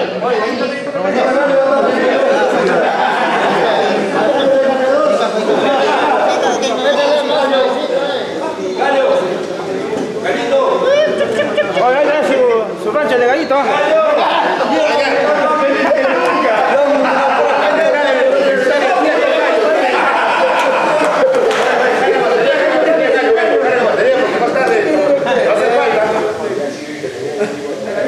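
Several men talk and laugh together nearby.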